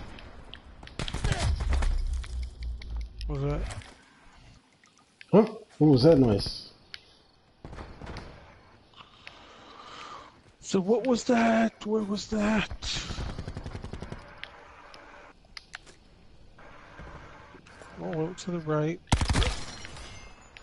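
Gunshots fire in short bursts.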